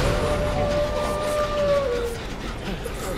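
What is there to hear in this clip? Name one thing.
A generator engine hums steadily, then cuts off.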